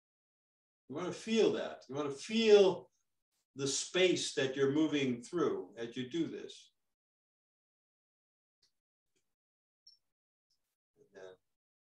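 An elderly man speaks calmly and clearly into a close microphone.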